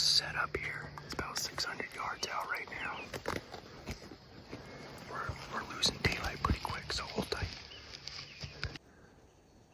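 A young man speaks quietly and closely, in a hushed voice.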